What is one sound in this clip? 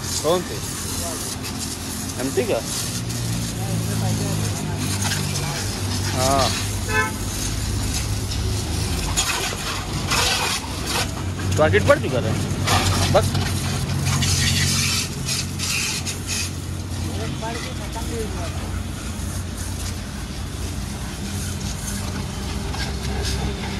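Water splashes and trickles on wet paving.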